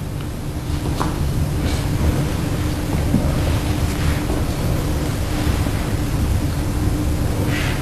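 A brush dabs and swishes in wet paint.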